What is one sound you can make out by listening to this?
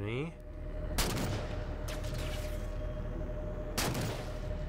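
A rifle fires loud, sharp shots that ring out briefly.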